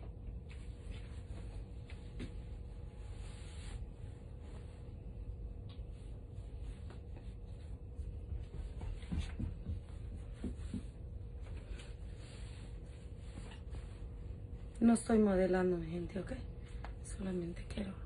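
Fabric rustles as a skirt is pulled and adjusted.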